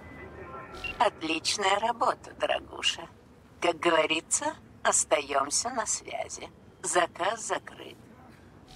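A woman speaks calmly over a radio call.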